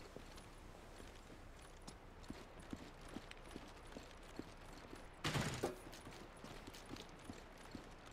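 Footsteps thud softly on a hard floor indoors.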